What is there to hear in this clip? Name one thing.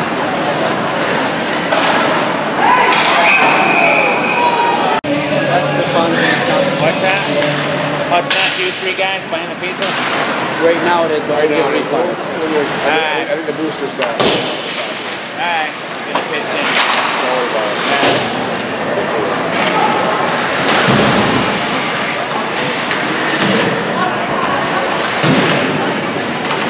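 A crowd of spectators cheers and chatters around a large echoing rink.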